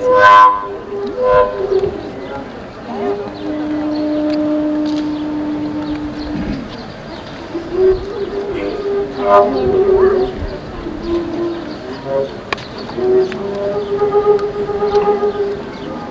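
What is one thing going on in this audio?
A long wooden flute plays a slow, breathy folk melody through a microphone.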